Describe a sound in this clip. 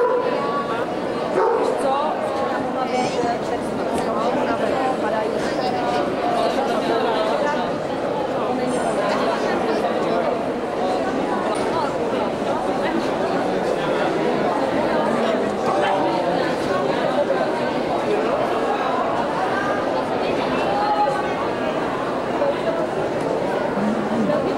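Many people talk at once in a large echoing hall.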